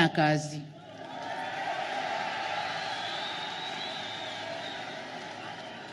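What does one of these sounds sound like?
A large crowd murmurs and cheers outdoors.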